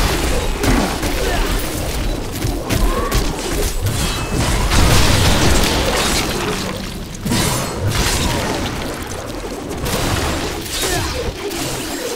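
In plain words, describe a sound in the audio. Magic blasts and explosions crackle and boom in a fast, chaotic fight.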